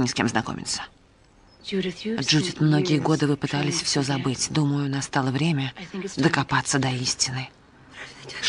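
A woman speaks calmly and earnestly, close by.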